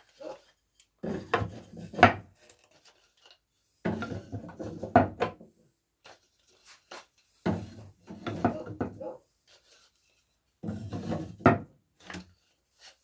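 A hand rubs and scrapes against the inside of a wooden box in repeated bursts.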